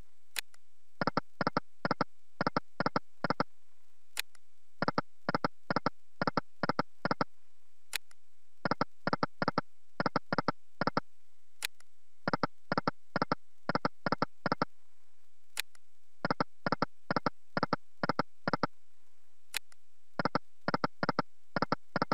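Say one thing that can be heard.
Electronic slot reels stop with a quick series of short chiming beeps.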